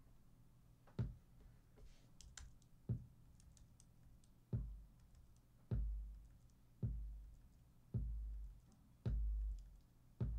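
Deep electronic kick drum hits play one after another.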